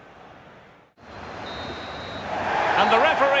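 A stadium crowd roars loudly.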